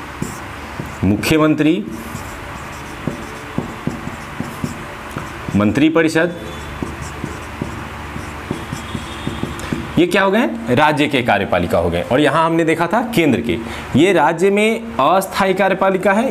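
A young man speaks calmly nearby, explaining.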